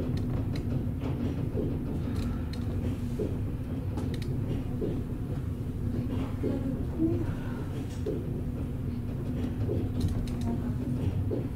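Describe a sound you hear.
Wheels of a suspended railway car click over joints in the overhead track.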